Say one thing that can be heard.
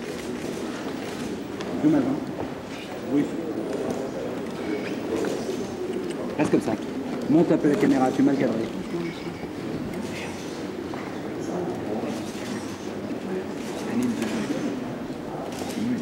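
Men talk quietly and warmly nearby.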